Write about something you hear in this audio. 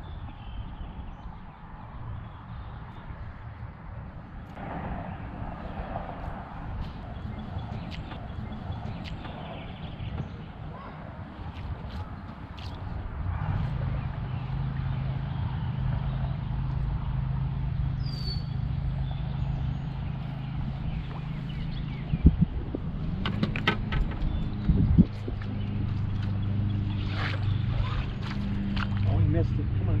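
Light wind blows over open water.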